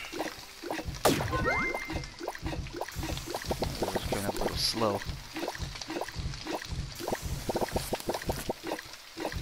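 A spatula knocks rhythmically against a frying pan.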